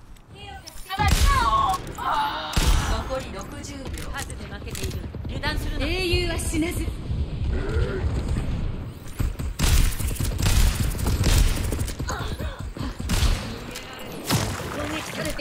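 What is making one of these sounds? A rifle fires loud, sharp shots again and again.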